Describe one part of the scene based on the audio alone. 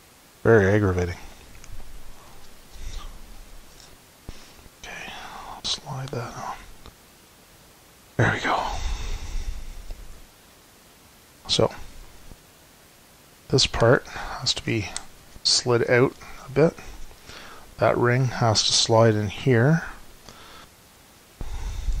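Plastic parts click and rattle as hands fit them together.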